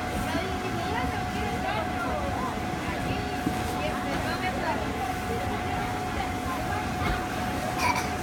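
Feet thump softly on a bouncy inflatable.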